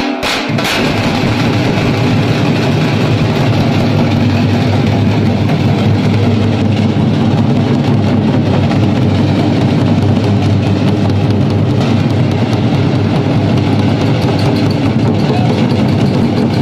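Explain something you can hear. A band of tasha drums is struck with sticks in a fast, driving rhythm.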